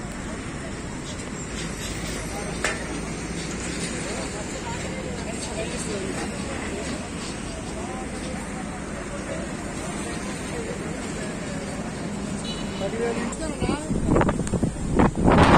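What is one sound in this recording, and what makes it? A crowd of men murmur and talk outdoors.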